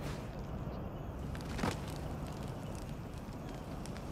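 Flames crackle nearby.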